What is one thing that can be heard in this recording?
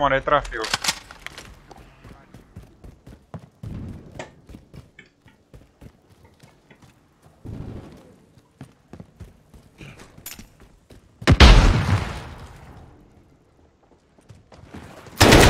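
Footsteps crunch on gravel.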